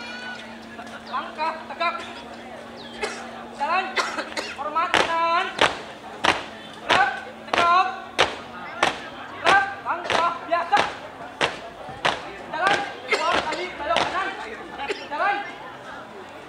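A group of young people chant marching calls loudly in unison, outdoors.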